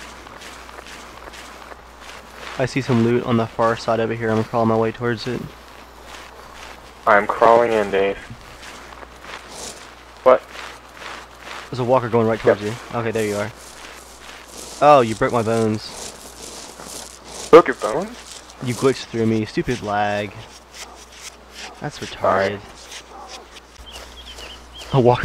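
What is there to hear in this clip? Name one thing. Cloth rustles and gravel scrapes as a soldier crawls along the ground.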